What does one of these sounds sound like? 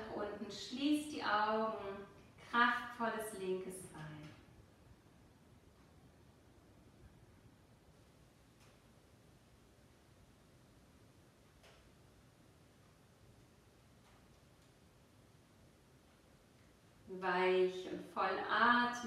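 A woman speaks calmly close to a microphone.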